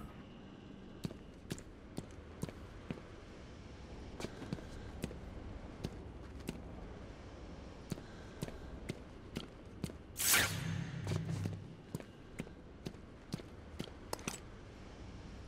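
Heavy boots step steadily on a hard floor.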